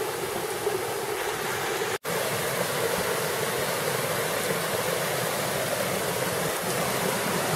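A shallow mountain stream gurgles and splashes over rocks.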